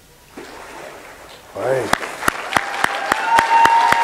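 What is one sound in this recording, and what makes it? Water splashes as a person is lowered under and lifted out.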